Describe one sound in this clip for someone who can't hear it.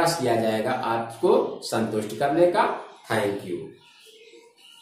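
A man speaks clearly and steadily close to the microphone.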